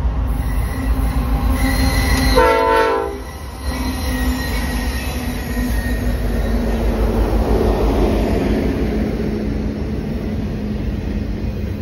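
Train wheels clatter and roar steadily along the rails.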